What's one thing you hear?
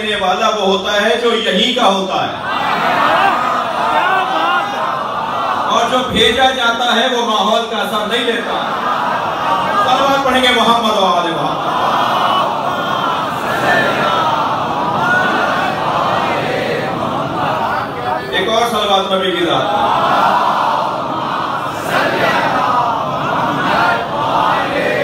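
A man speaks with passion into a microphone, heard through loudspeakers.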